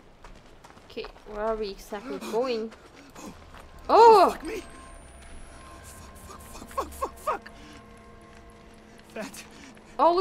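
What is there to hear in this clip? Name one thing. A young woman swears and exclaims in alarm into a close microphone.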